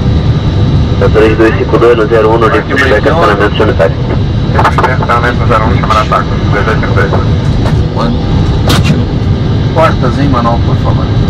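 A young man speaks calmly through a headset microphone.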